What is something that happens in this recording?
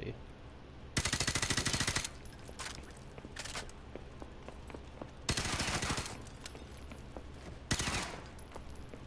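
A rifle fires in rapid bursts, with loud rattling shots.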